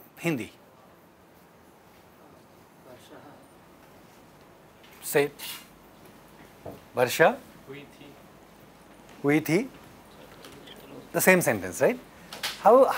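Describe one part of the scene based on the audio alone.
A man speaks calmly in short phrases with pauses, close to a microphone.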